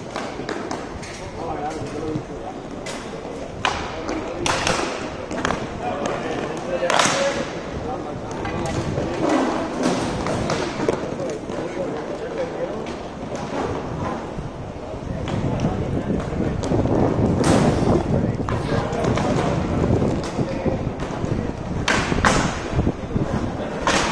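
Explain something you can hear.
Hockey sticks clack sharply against a ball and the floor.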